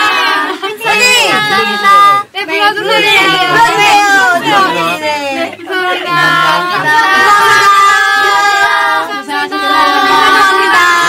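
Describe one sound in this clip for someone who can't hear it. A group of young women sing together close to a microphone.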